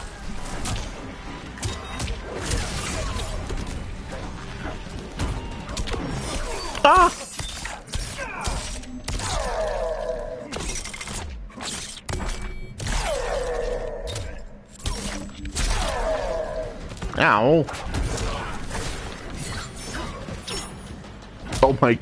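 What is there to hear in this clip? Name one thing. Game fighters grunt and yell amid punches and impacts.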